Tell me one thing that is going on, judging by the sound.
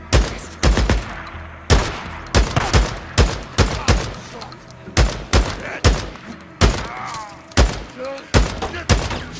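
A rifle fires repeated loud shots that echo outdoors.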